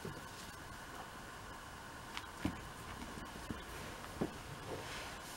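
A cat's paws thump softly, batting at a ribbon.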